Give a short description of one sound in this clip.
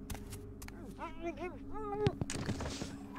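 A man cries out in pain during a struggle.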